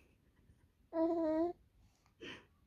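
A baby coos softly close by.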